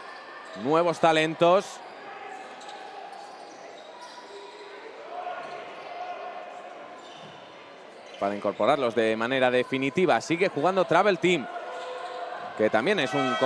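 A basketball bounces on a wooden court indoors.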